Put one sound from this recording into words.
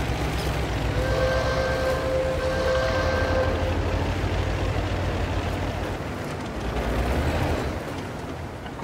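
A heavy tank engine rumbles low and steadily, then fades.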